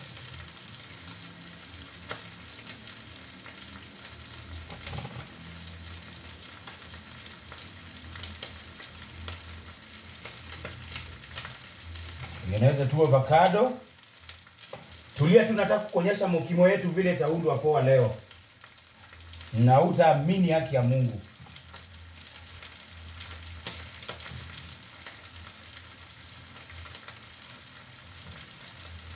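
A knife scrapes softly while peeling a potato.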